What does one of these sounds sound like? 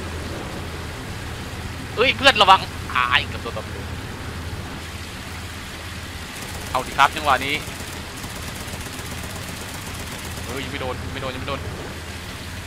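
A motorboat engine drones steadily.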